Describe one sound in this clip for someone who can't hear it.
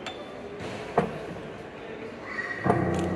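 A child presses a low chord on a piano.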